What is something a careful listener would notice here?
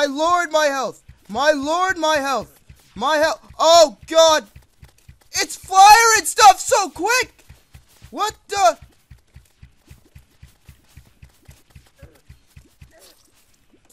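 A bow fires arrows in a quick, steady rhythm.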